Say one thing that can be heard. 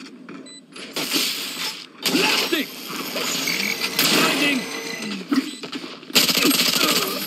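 A gun fires in sharp bursts.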